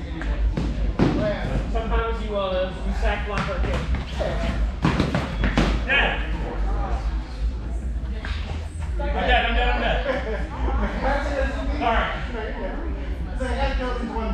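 Foam swords knock together in quick sparring strikes.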